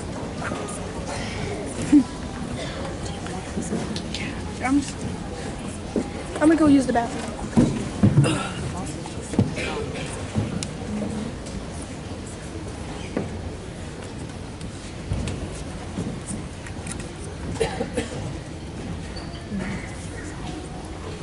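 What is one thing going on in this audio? A crowd of adults and children murmurs and chatters in a large echoing hall.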